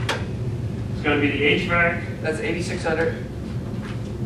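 A man speaks calmly into a microphone, heard through a loudspeaker system.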